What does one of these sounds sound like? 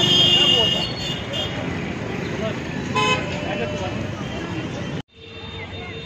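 Cars drive past on a busy street outdoors.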